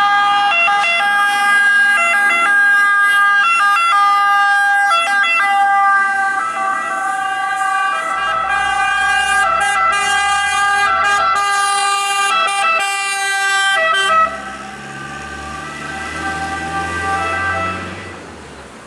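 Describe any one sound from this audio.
Fire engine sirens blare loudly in a two-tone wail.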